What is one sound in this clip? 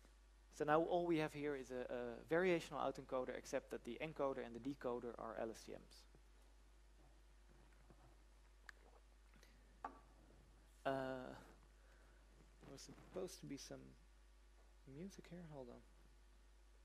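A man speaks calmly into a microphone, as in a lecture, with pauses.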